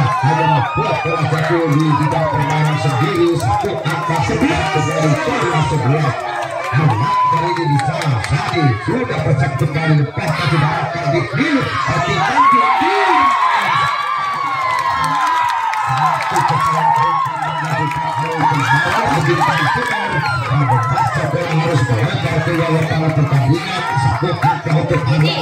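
A large outdoor crowd chatters and cheers loudly.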